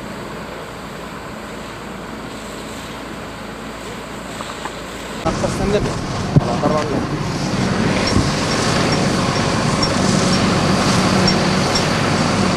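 High-pressure water jets hiss onto wet asphalt.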